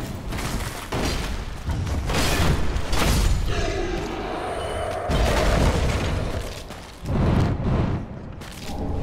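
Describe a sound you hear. Swords clash and strike armour in a fight.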